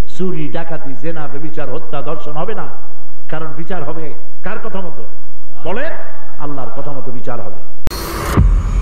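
A middle-aged man preaches with fervour into a microphone, his voice rising and falling in a chanting way.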